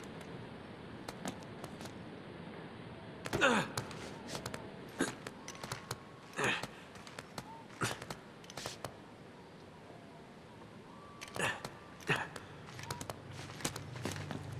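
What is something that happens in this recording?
Hands grip and scrape on stone in short bursts.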